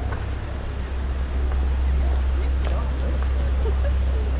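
A car drives slowly along the street.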